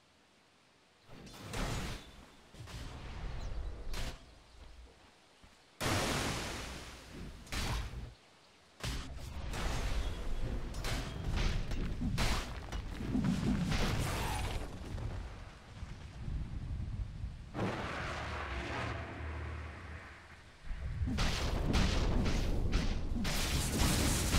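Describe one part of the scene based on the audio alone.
Computer game battle effects clash, crackle and boom in bursts.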